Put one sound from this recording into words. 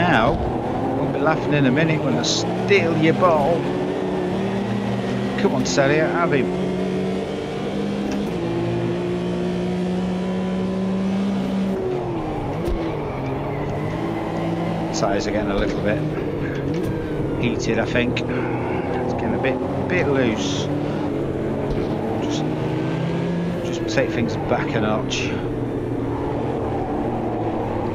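A racing car engine roars loudly, its pitch rising and falling as the gears shift.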